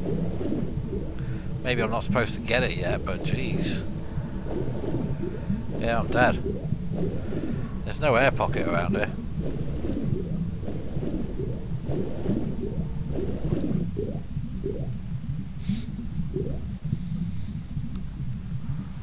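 Water gurgles and churns in a low, steady rumble.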